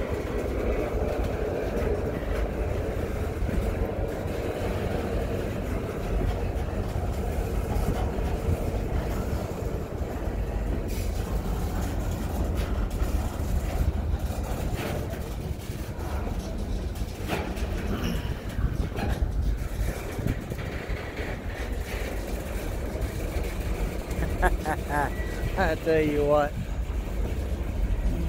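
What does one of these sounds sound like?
Freight cars rumble and clatter steadily along the rails close by.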